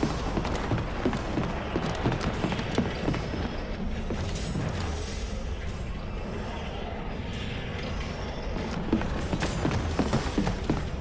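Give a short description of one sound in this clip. Footsteps clang quickly on a metal floor.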